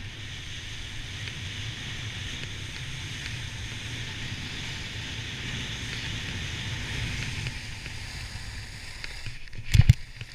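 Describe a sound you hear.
Skis scrape and hiss over packed snow at speed.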